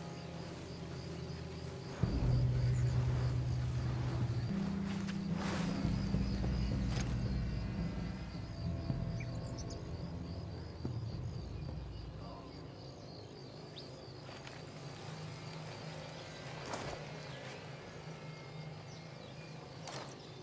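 Grass rustles as someone crawls through it.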